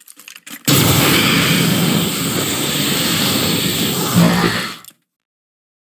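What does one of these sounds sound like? A beam weapon fires with a loud, steady roar.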